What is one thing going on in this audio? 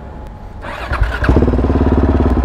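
A motorcycle engine starts up.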